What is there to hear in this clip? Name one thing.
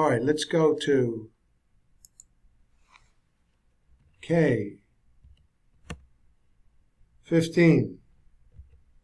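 An elderly man speaks calmly into a microphone, in short bursts.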